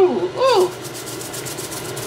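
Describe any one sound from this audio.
Salt is shaken from a shaker into a pot.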